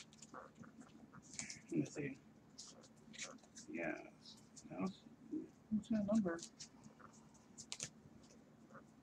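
Stiff plastic sleeves crinkle and rustle.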